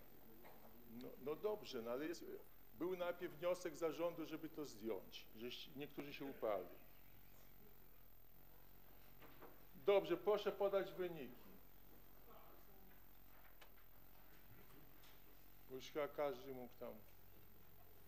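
An elderly man speaks calmly through a microphone in a large room.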